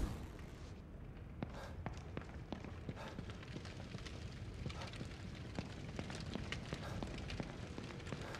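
Footsteps tap quickly across a wooden floor.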